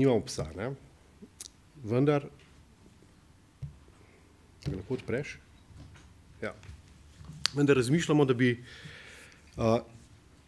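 A middle-aged man speaks calmly into a microphone, reading out with pauses.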